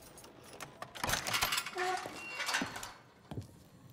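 A metal gate rattles and creaks open.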